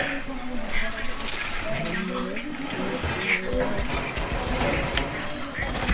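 A metal shutter rattles and clanks as it is reinforced.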